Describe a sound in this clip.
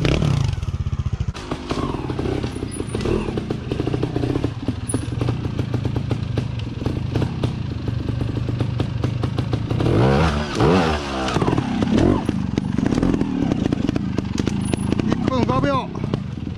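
A motorcycle engine putters and pops close by.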